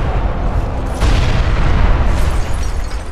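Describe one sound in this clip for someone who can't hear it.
Rocks crash and crumble in a burst of debris.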